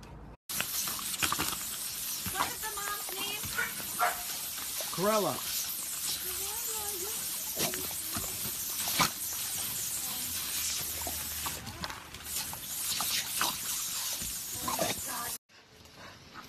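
A dog growls and snaps at a spraying nozzle.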